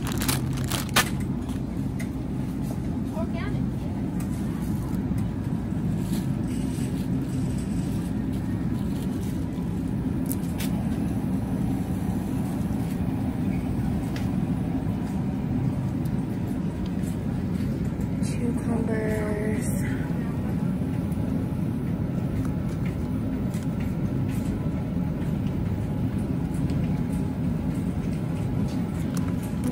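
Refrigerated display cases hum steadily and low.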